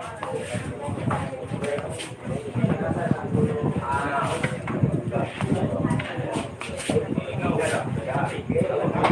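Several men and women chatter nearby.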